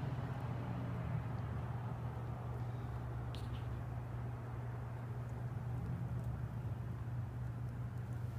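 A squirrel nibbles a nut close by.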